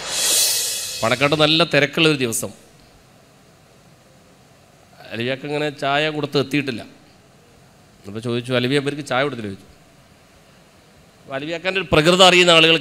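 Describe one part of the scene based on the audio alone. A man speaks with animation into a microphone, heard through loudspeakers, in short bursts.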